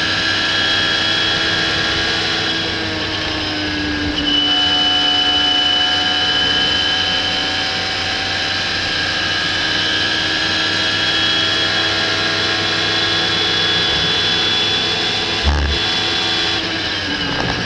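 Wind rushes loudly past an open cockpit.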